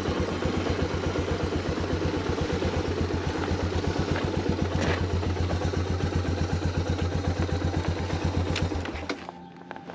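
A motorcycle engine idles with a steady, throbbing rumble.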